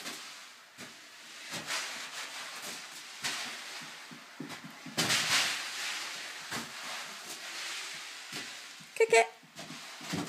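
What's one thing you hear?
A rubber balloon thumps as a small child kicks and bats it.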